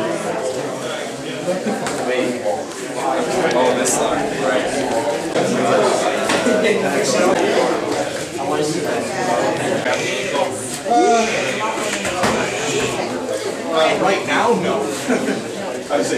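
A crowd of men talk over each other nearby.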